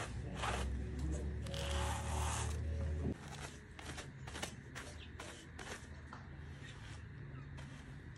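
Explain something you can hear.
Wool cards scrape back and forth across each other.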